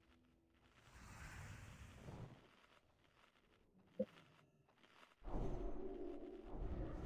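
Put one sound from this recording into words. Magic spell effects whoosh and shimmer.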